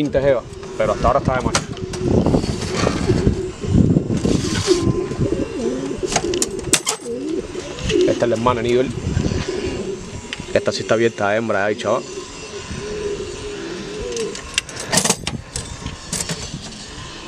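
Metal cage doors rattle and clank as they slide.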